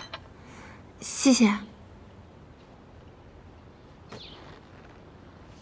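A young woman exclaims briefly in a high voice, close by.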